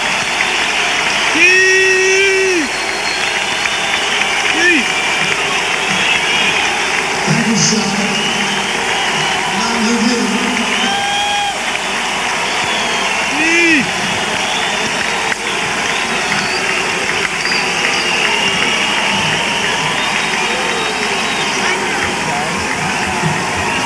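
A rock band plays loudly in a large echoing arena.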